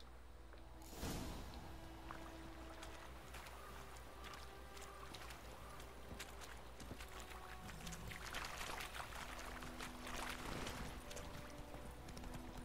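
Horses' hooves thud along a dirt track.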